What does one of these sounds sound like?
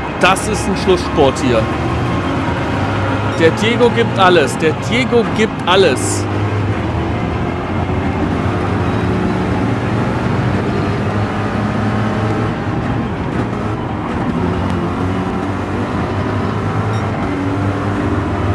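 A racing car engine roars steadily, rising and falling as it shifts gears.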